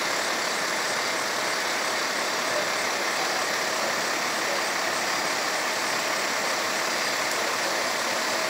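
A large fire roars and crackles in the distance.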